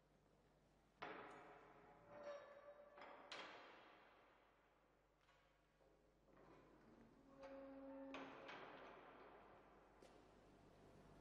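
A metal gate clanks and rings with echo.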